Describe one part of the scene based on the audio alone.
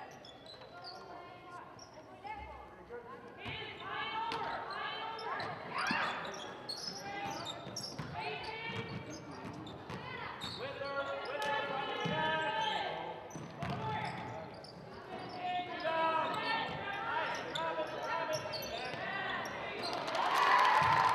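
Young women shout and call out across a large echoing gym.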